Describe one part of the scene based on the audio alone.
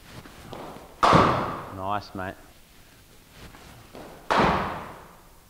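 A cricket bat strikes a ball with a loud crack that echoes.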